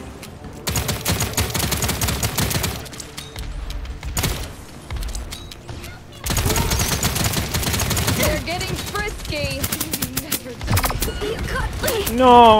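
Rapid gunfire bursts in quick volleys.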